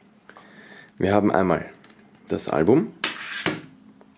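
A plastic disc case clacks down on a wooden table.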